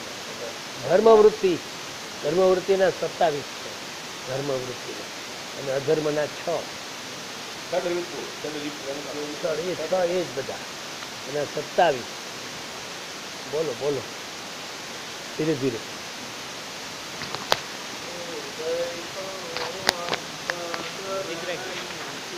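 An elderly man speaks in short phrases close by, with pauses.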